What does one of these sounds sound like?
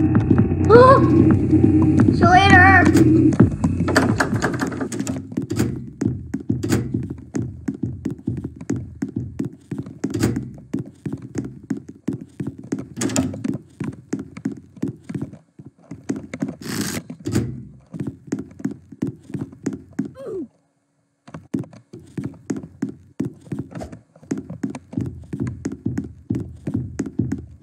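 Quick footsteps thud steadily on a hard floor.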